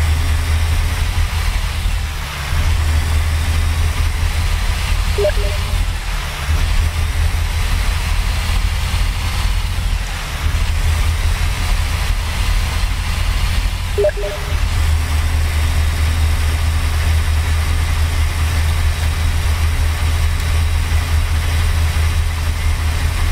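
A truck engine drones steadily with a low rumble.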